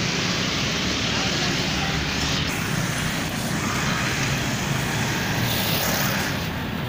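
Steady traffic noise fills the air outdoors.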